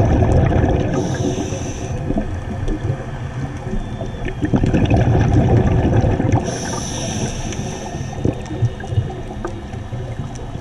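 Soft crackling clicks sound underwater.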